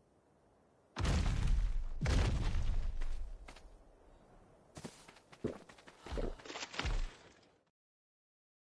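A large creature stomps heavily over rocky ground.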